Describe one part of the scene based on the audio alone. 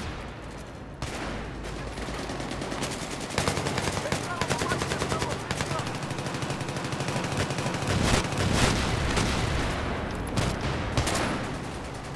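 Rifle shots crack now and then.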